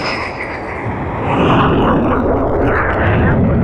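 A jet lands with a heavy thud on the deck.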